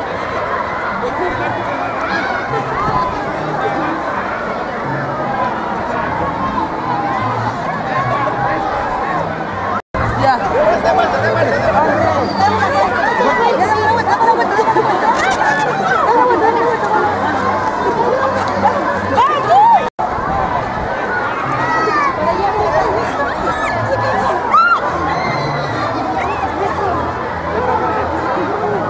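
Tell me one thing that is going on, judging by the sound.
A crowd of men and women chatter and shout excitedly outdoors.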